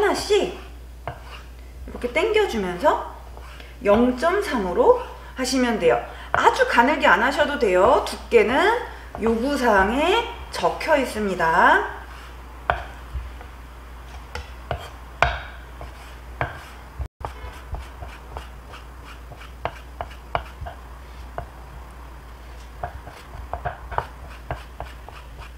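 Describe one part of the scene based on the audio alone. A knife knocks lightly against a wooden cutting board as it slices.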